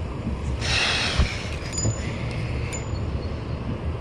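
A fishing reel whirrs as its handle is wound.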